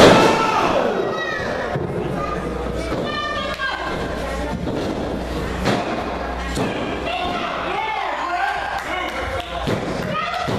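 A small crowd shouts and cheers in an echoing hall.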